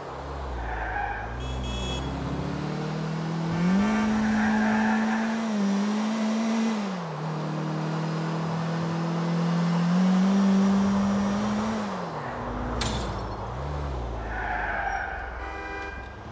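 Tyres screech as a car skids round a corner.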